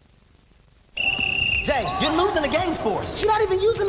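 A basketball bounces on a wooden court in an echoing gym.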